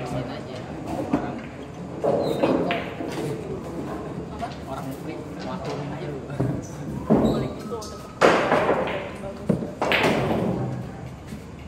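Young men chat nearby in an echoing room.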